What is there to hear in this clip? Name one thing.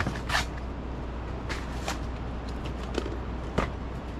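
A plastic crate thuds and rattles as it is set down.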